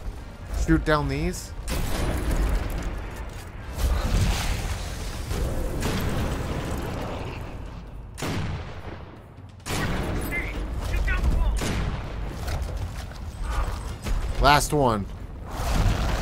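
Gunshots fire in quick bursts, ringing in a large echoing hall.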